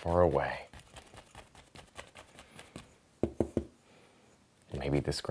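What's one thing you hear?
A brush scrapes and taps lightly against canvas.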